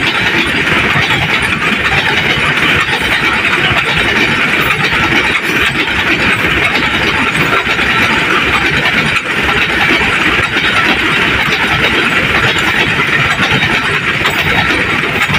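Freight wagons rumble and clatter loudly over the rails close by.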